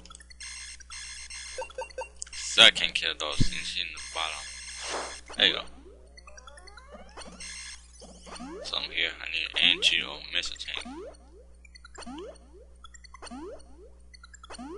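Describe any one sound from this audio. Chiptune game music plays with beeping tones.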